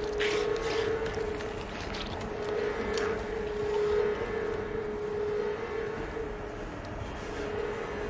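Footsteps shuffle slowly over a hard floor.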